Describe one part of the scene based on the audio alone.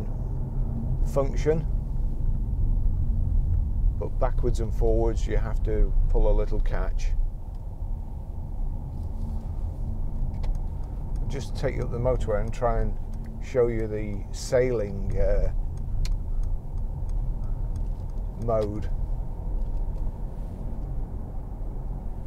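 A car engine hums low and steadily.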